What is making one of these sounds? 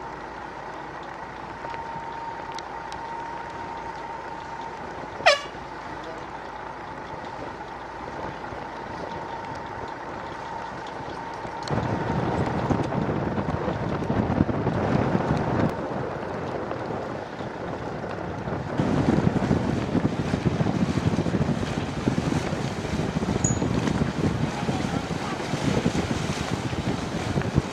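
Wind blows across open water.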